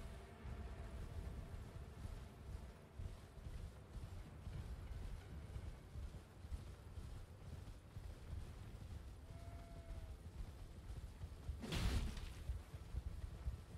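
A horse gallops with thudding hooves.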